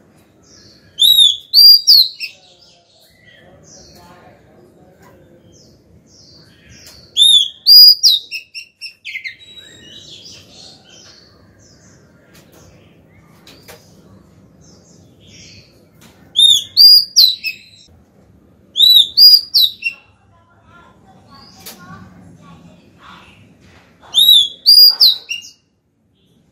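A caged bird sings loud, clear whistling phrases in short bursts, close by.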